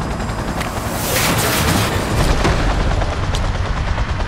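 A vehicle crashes with a loud grinding impact.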